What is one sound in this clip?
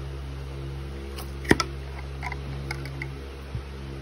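A metal jar lid pops open with a sharp click.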